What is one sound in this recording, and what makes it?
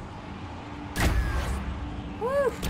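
A heavy impact booms with a crackling burst.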